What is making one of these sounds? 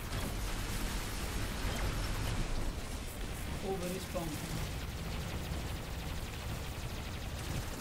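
Heavy robot footsteps thud and machinery rumbles in a game.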